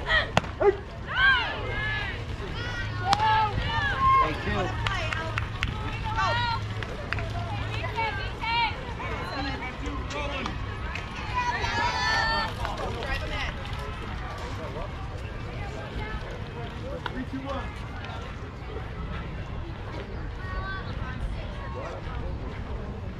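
Young girls shout and cheer in high voices from across an open field.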